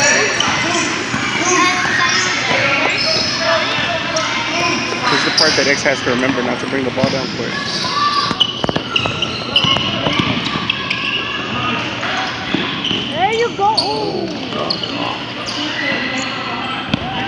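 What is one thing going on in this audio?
Young players and spectators shout and chatter in a large echoing hall.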